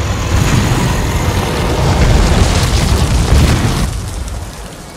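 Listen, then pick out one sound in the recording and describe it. A giant stone creature rumbles and crashes heavily.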